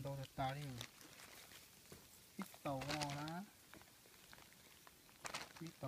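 Hands rummage through a pile of mushrooms.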